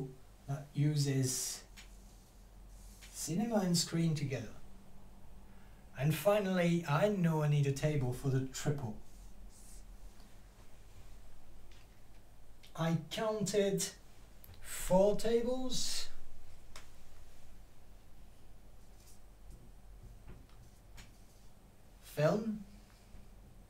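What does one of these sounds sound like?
A middle-aged man speaks calmly, close by, with pauses.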